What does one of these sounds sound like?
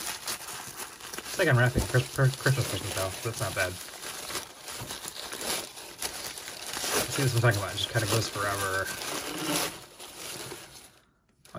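Paper crinkles and rustles loudly.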